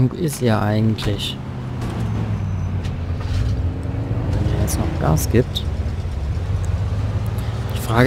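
A car engine starts and hums steadily as the car drives off.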